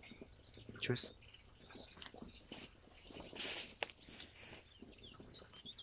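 Tall grass rustles underfoot as someone walks.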